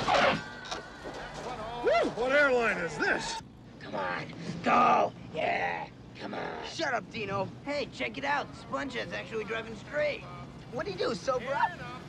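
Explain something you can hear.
Young men talk excitedly close by.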